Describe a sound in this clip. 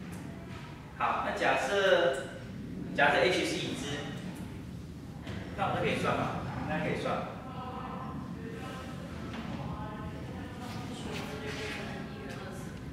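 A middle-aged man speaks calmly, as if lecturing.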